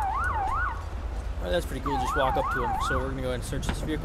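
A police siren wails in short bursts.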